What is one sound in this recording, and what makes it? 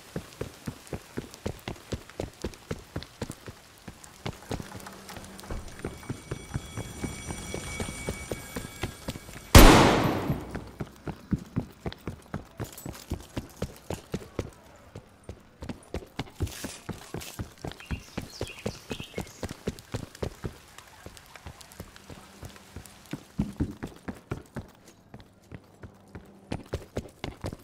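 Quick footsteps tap steadily on hard floors.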